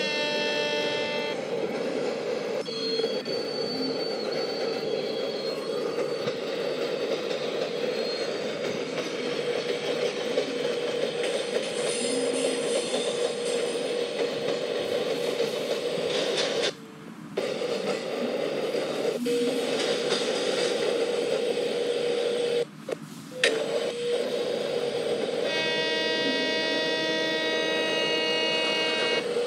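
A train's wheels rumble steadily along the rails.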